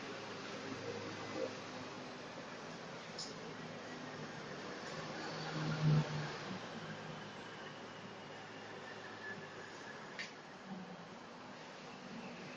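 Arms slap and knock against each other in quick blows.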